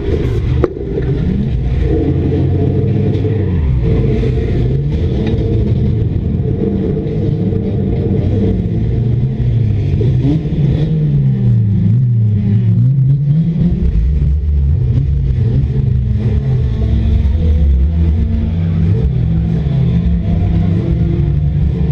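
A stock car engine revs hard, rising and falling in pitch, heard from inside the stripped cabin.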